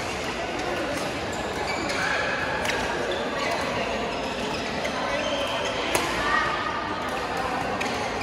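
Many players chatter and call out in a large echoing hall.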